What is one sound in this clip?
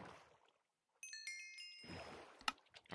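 A short bright chime plays, with rapid plinks.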